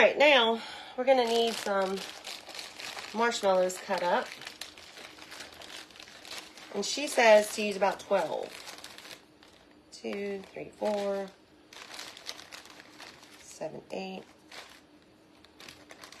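A plastic wrapper crinkles in hands.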